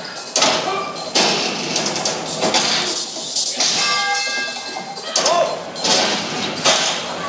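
Loud music plays through speakers in a large echoing hall.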